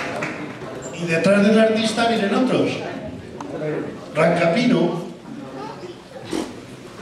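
A middle-aged man speaks into a microphone through loudspeakers, with animation.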